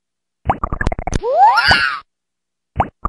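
A game sound effect sweeps in pitch.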